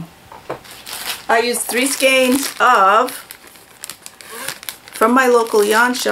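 A plastic bag crinkles as it is opened.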